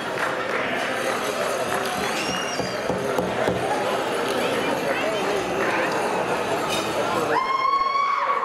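Bells on dancers' outfits jingle and rattle with their steps.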